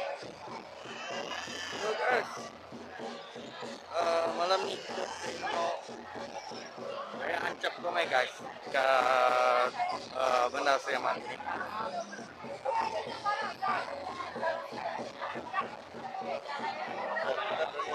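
A young man talks close to a microphone.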